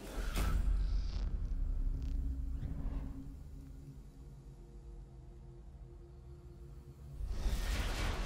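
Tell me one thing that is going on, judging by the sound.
A low electronic tune plays, steady and droning.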